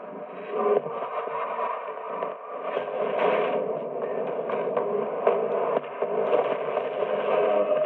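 An old television hisses and crackles with static.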